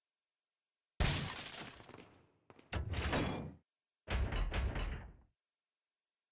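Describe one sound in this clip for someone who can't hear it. Heavy machinery clanks and grinds into motion in bursts.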